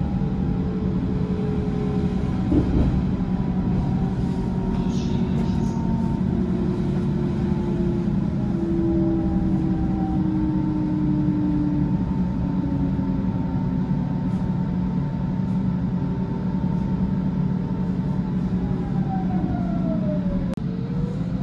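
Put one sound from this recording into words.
Train brakes squeal and whine as the train slows down.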